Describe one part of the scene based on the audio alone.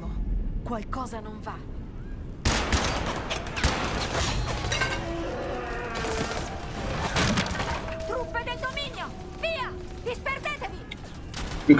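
A woman speaks urgently nearby.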